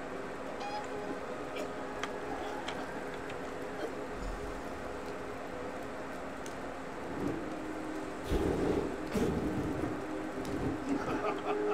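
Magic fire bursts and crackles.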